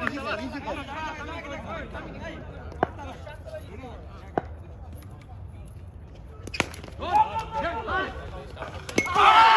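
Men shout and call out across an open outdoor ground.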